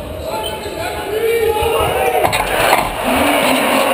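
A basketball swishes through the net.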